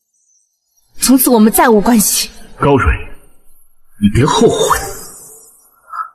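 A young man speaks coldly and firmly.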